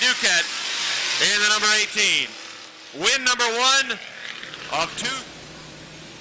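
Race cars roar past at speed, their engines rising and falling in pitch.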